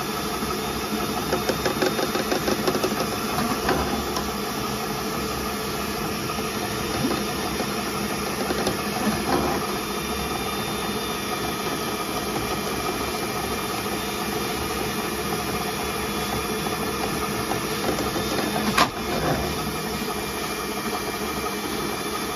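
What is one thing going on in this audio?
A drain cleaning cable whirs and rattles as it spins in a pipe.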